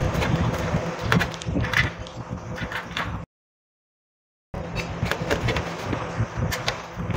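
A knife knocks and scrapes against a steel plate while cutting fruit.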